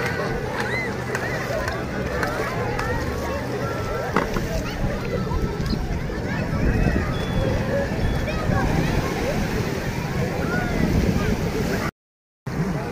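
A crowd of people chatter on a busy beach.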